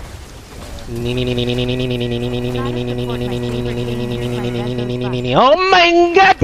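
A young man shouts a long, drawn-out cry.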